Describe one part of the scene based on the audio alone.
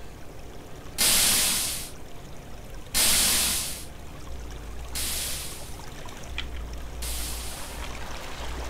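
Water splashes in short rushing bursts.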